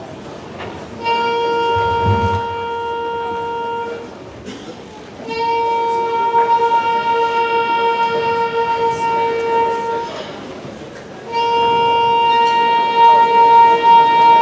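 A band plays long, loud held notes in a large hall.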